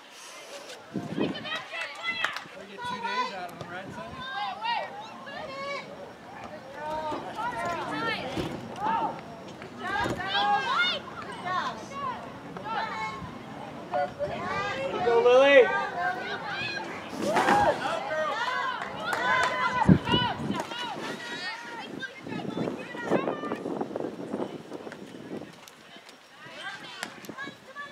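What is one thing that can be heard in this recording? Young women shout and call out across an open playing field.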